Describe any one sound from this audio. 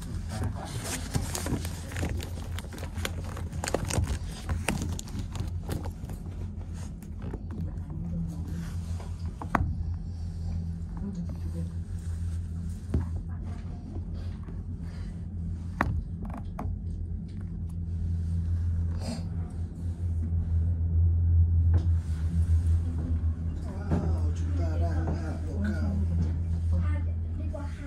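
A cable car hums steadily as it glides along its cable.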